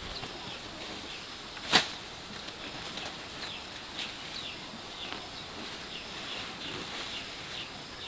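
A woman picks plants, rustling and snapping stems.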